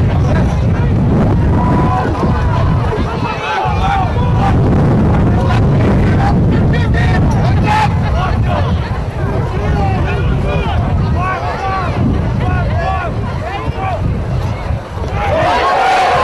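Spectators chatter and call out outdoors.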